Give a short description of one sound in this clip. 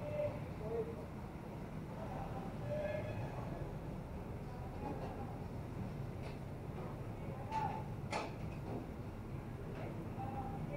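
Car horns honk in short bursts.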